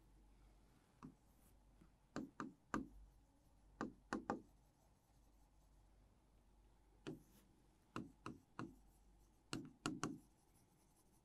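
A marker squeaks and taps on a board.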